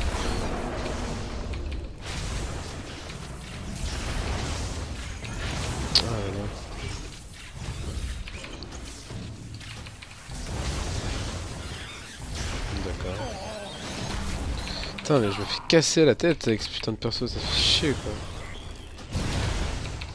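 Electric spells crackle and zap in bursts.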